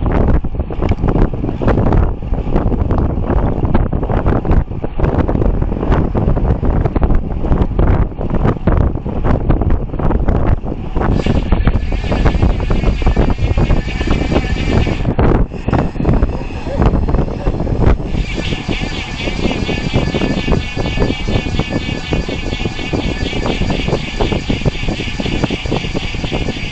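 Wind rushes and buffets loudly past the microphone outdoors.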